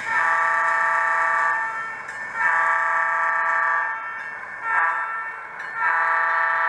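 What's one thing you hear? A model train horn sounds in repeated long blasts.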